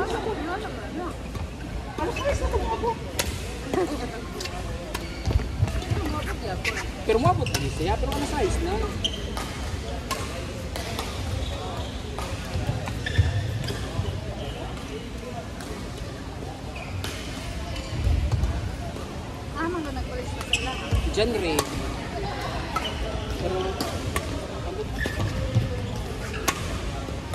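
Badminton rackets strike a shuttlecock with sharp pops in a large echoing hall.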